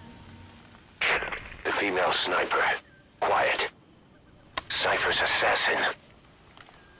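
A man speaks in a low, gravelly voice.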